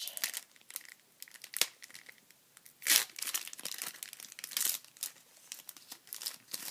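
Foil packaging crinkles and tears close by.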